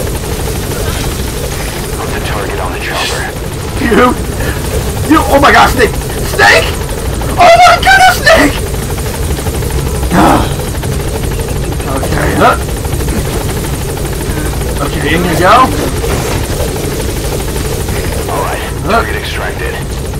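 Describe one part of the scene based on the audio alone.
A helicopter hovers close by with a steady, deep whirring roar.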